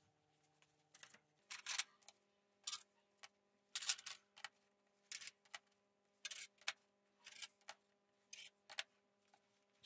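Thin metal rods clink as they are set down on a metal table.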